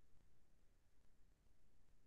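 A plastic marker cap clicks.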